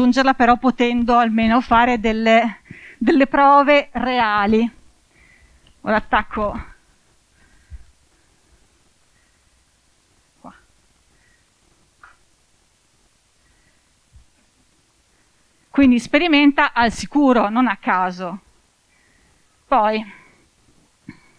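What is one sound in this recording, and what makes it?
A woman speaks with animation into a microphone, heard through a loudspeaker.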